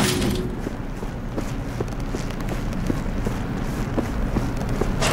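Footsteps walk steadily along a hard floor.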